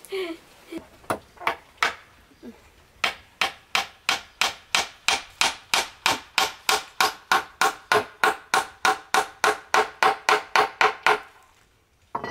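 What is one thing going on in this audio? A hammer taps steadily on wood.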